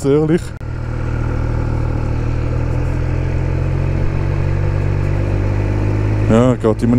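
A motorcycle engine revs up sharply and drops back.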